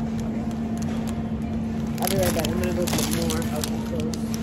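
Plastic flower wrapping crinkles.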